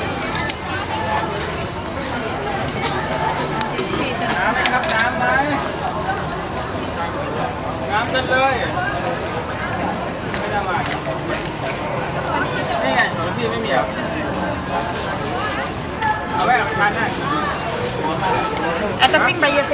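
Men and women chatter in the background on a busy street.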